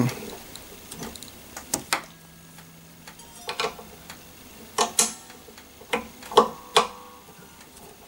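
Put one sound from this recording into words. Small metal parts click and tap against a guitar.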